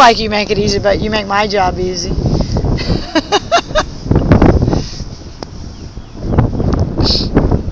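Wind blows across the microphone outdoors.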